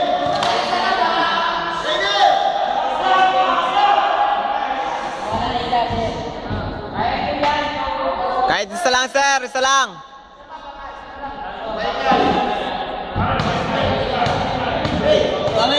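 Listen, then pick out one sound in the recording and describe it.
Young men talk and call out to each other in a large echoing hall.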